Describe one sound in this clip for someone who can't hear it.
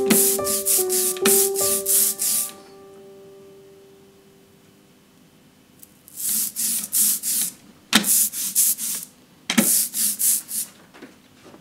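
A hand roller rolls over sticky ink in quick back-and-forth strokes with a tacky hiss.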